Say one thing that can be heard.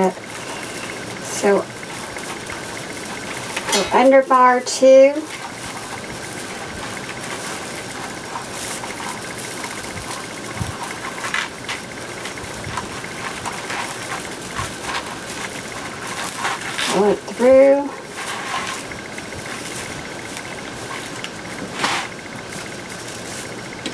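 Plastic mesh rustles and crinkles as it is handled.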